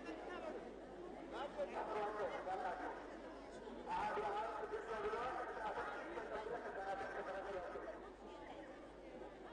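A large crowd chants and sings together outdoors.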